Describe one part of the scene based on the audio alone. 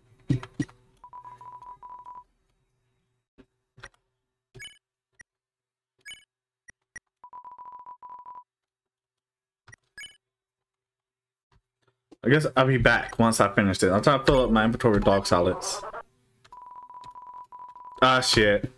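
Rapid, steady beeping sounds as game text types out.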